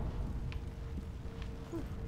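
A sword swings and strikes with a heavy thud.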